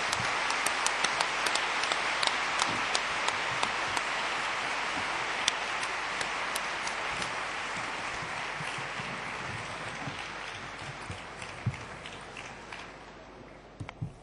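A large audience applauds in a big hall and the applause slowly dies away.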